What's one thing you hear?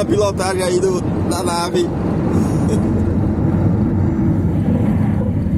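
A car engine hums steadily as the car drives along.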